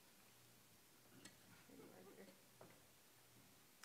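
A woman speaks quietly at a distance in a large room.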